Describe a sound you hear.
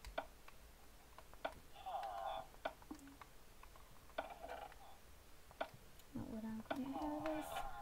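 A game menu gives short, sharp clicks at irregular intervals.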